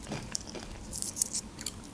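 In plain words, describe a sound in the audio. Fingers rustle through crisp snacks.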